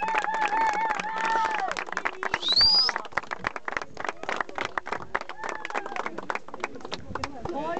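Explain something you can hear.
A young man strums an acoustic guitar outdoors.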